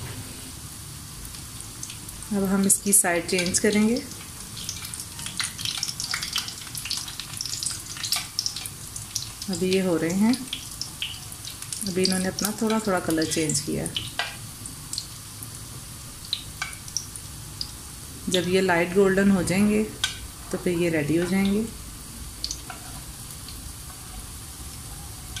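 Metal tongs click and scrape against a frying pan.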